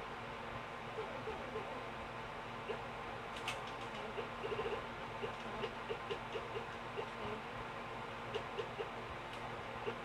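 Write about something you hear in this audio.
Short electronic beeps sound one after another.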